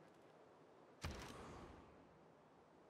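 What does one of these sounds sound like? A game menu opens with a soft whooshing sound.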